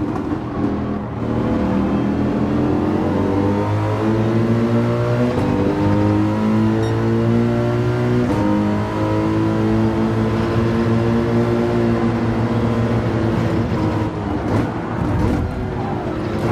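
A racing car engine roars loudly, revving up through the gears again and again.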